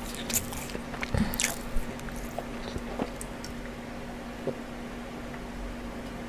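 A young man sips and gulps a drink close to a microphone.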